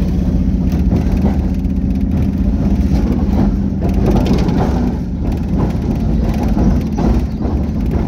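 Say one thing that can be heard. A car engine hums while driving along, heard from inside the car.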